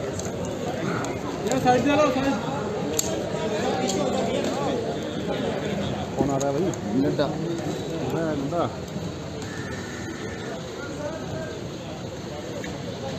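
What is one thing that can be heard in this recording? A crowd of men chatter and call out outdoors.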